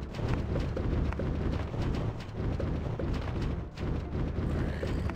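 Cartoon plants shoot peas with quick, repeated popping sounds.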